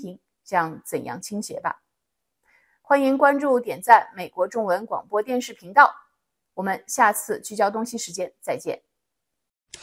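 A woman speaks calmly and steadily into a close microphone.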